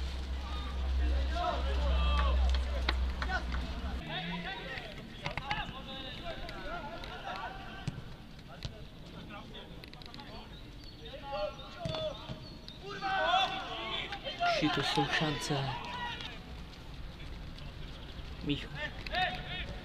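Male footballers shout to each other in the distance on an open outdoor pitch.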